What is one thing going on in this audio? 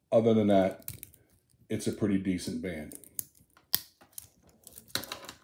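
Metal links of a watch bracelet click softly as fingers bend them.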